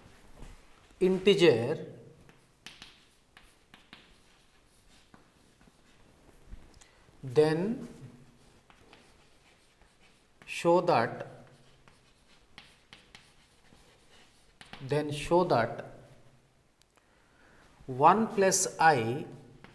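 A man speaks in short phrases, calmly and clearly, like a teacher explaining.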